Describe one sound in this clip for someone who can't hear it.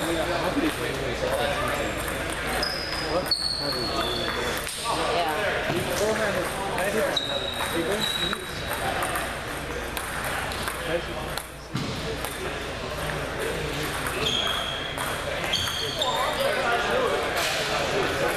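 Several men talk in the background of a large echoing hall.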